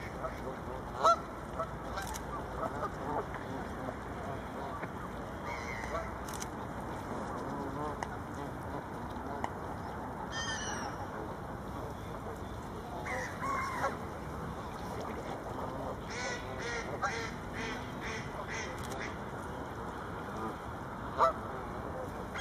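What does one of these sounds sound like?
Geese honk now and then, close by and farther off.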